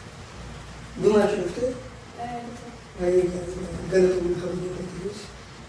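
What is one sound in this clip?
A young woman speaks nearby in a calm voice.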